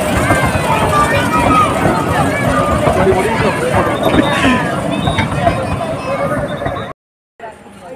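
A crowd of children and adults chatters and shouts excitedly nearby.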